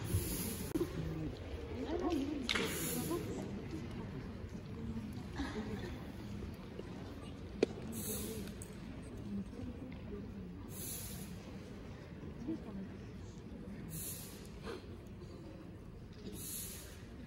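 Dancers' feet shuffle and tap softly on a stage floor.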